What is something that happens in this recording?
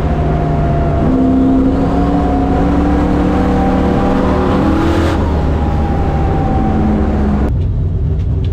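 A race car engine roars loudly close by, its pitch rising as it speeds up.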